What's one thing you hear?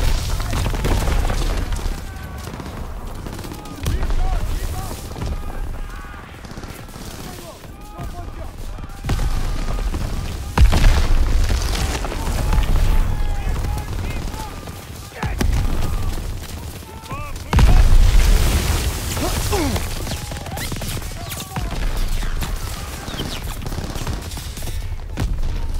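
Explosions boom and rumble nearby, heavy and low.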